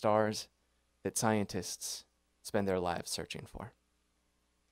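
A young man reads aloud into a microphone, calmly, with pauses.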